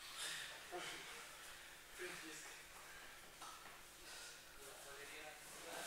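A man talks calmly nearby in an echoing hall.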